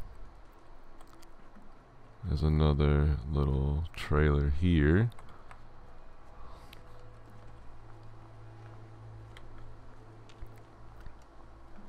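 Footsteps crunch over snow and gravel.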